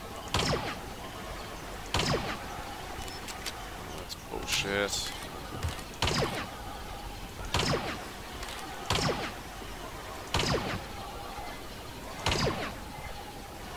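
A sniper rifle fires loud single shots, each followed by a short echo.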